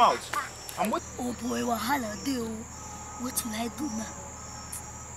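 A young boy speaks.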